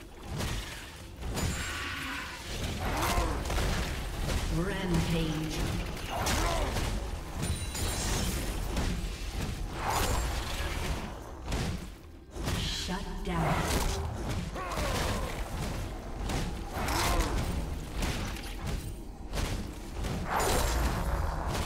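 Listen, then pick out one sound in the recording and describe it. Fantasy battle sound effects of spells blasting and weapons clashing go on throughout.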